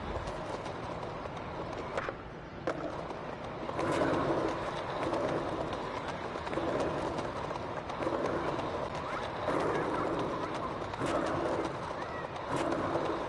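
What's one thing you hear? Skateboard wheels roll steadily over paving stones.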